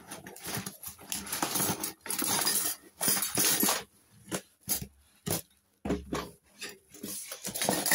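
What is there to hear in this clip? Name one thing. A packaged item rattles and knocks as it is pulled out.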